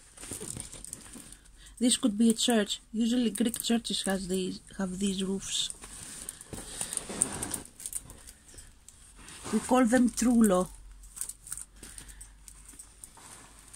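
Plastic film crinkles as it is handled.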